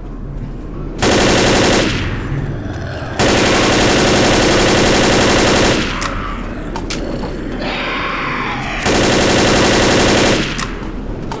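A rifle fires rapid, loud bursts of gunshots.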